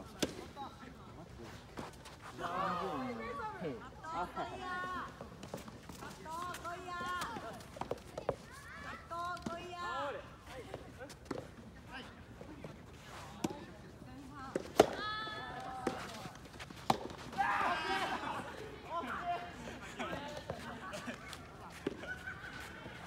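Tennis balls pop off racquets with sharp thwacks.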